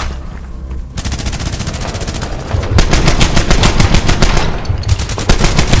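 Automatic rifles fire in rapid, loud bursts close by.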